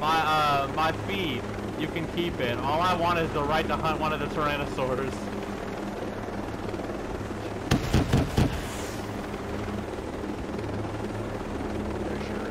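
A helicopter's rotor and engine drone steadily.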